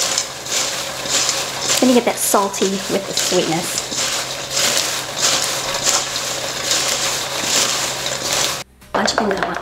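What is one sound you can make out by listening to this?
Dry food rustles and crumbles as hands mix it in a bowl.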